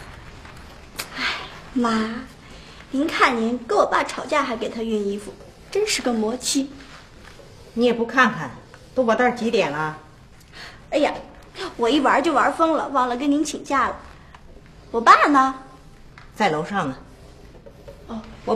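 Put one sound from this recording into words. A young woman speaks cheerfully and animatedly, close by.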